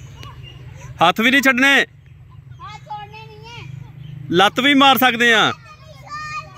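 Young children shout loudly outdoors.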